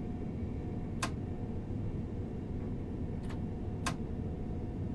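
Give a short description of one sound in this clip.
Train wheels click over rail joints a few times.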